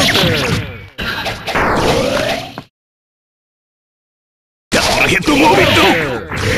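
Fighting game blows land with sharp, crackling hits and whooshes.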